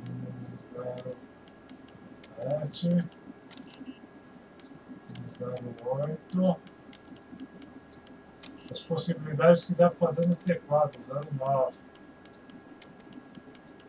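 Keypad buttons beep as digits are entered.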